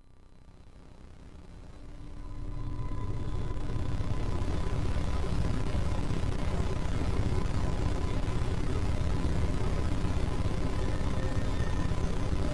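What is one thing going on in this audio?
A synthesizer plays a dense, pulsing electronic drone that swells up over the first few seconds.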